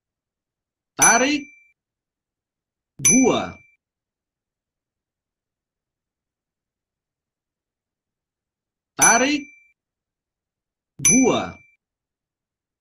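Short chime-like tones play in pairs through a computer speaker.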